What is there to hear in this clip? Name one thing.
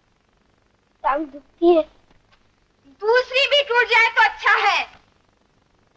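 A woman sobs and wails nearby.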